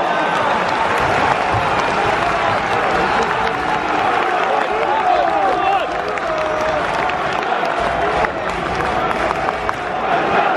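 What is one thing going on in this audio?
A large stadium crowd chants and sings loudly all around.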